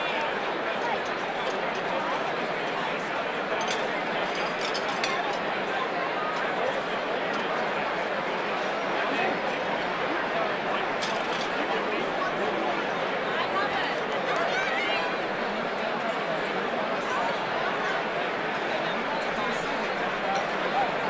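Glasses and cutlery clink on plates.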